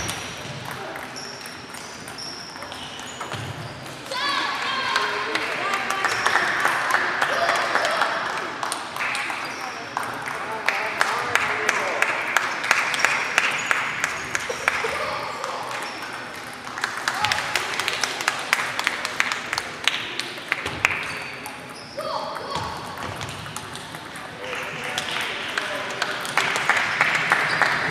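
Table tennis balls click quickly against paddles and tables in a large echoing hall.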